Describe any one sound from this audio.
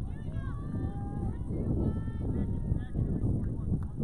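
Young players call out loudly from across an open field.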